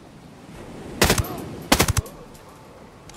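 A rifle fires two loud shots close by.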